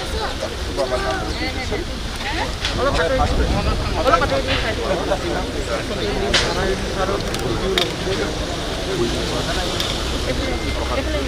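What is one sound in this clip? A crowd of men talks and murmurs close by.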